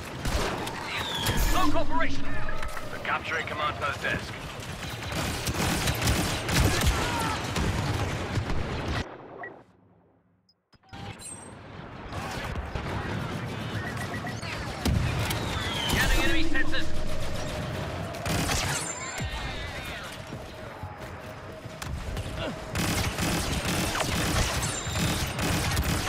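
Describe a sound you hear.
Blaster fire crackles and zaps in rapid bursts.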